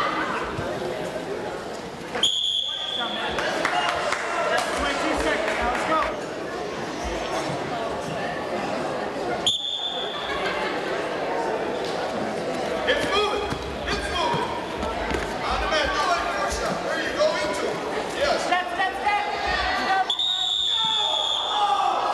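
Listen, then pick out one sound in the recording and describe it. Wrestlers thump and scuffle on a mat.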